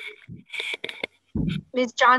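An elderly man speaks over an online call.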